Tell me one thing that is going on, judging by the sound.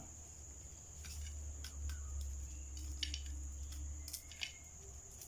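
A knife scrapes and clicks against an ear of corn.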